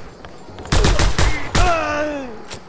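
Gunshots fire in a quick burst.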